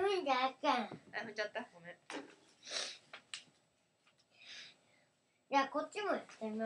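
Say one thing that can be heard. A young child talks excitedly nearby.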